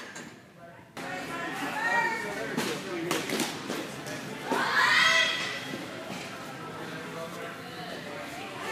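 Men shout loud encouragement.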